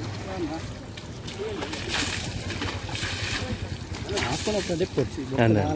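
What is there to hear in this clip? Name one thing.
Water pours from a bucket and splashes onto a buffalo's back and the ground.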